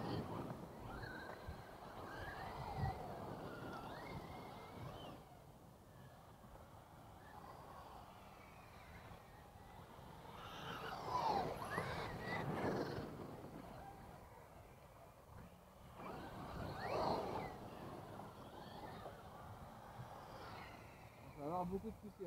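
Small electric radio-controlled cars whine loudly as they race around a dirt track.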